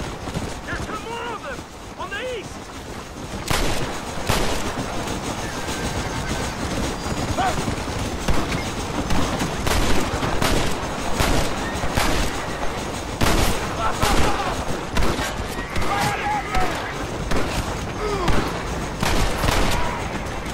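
Horse hooves gallop over dry ground.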